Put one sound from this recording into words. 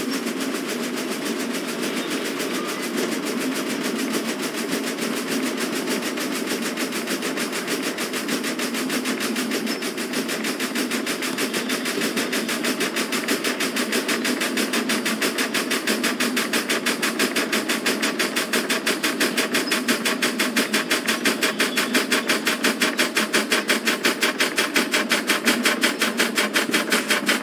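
A steam locomotive chuffs rapidly and steadily as it runs along the track.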